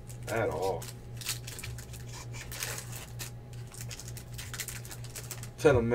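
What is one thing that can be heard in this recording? A foil card wrapper crinkles as hands tear it open.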